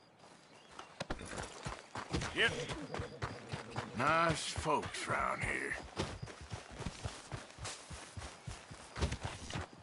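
Footsteps thud quickly over grass and dirt.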